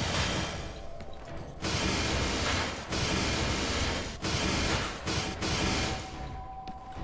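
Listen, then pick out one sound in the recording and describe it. A cutting tool hisses and crackles loudly as it burns through metal.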